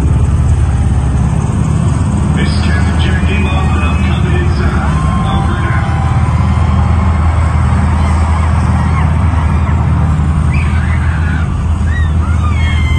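Loud music with a heavy booming beat plays over loudspeakers in a large echoing hall.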